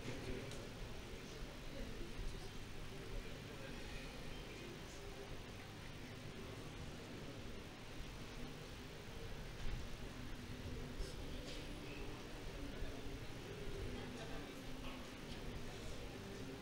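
A mixed choir of young men and women sings together through microphones in a reverberant hall.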